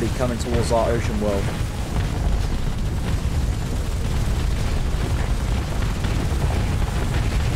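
Laser weapons fire in quick bursts.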